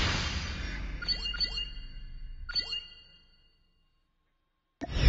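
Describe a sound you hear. Electronic game chimes ring out in quick bursts.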